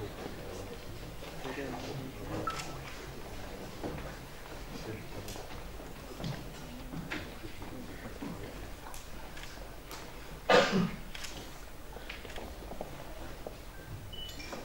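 An audience shifts and rustles quietly in a hall.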